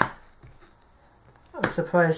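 A card is placed down on a table.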